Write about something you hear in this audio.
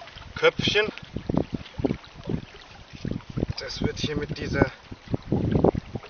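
An adult man talks calmly, close by.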